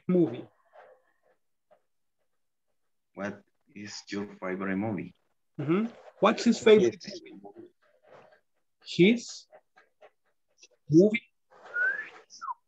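A man speaks over an online call in short phrases.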